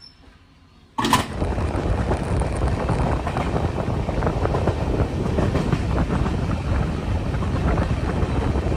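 A train rattles along the tracks with loud rushing wind.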